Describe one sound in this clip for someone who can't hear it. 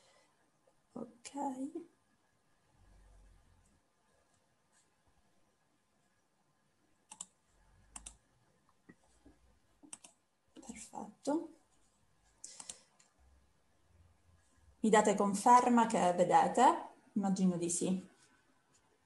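A young woman speaks calmly over an online call, in short phrases with pauses.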